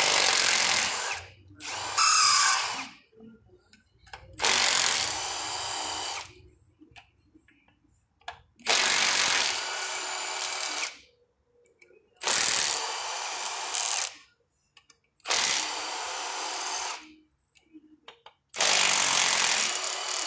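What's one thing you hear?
A pneumatic impact wrench whirs in short bursts, loosening bolts.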